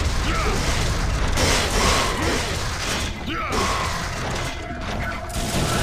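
Blades slash and strike with sharp metallic hits.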